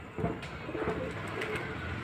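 A pigeon's wings flap as it takes off.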